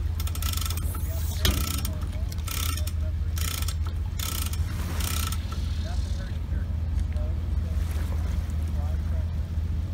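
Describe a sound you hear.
A boat motor idles with a low, steady rumble.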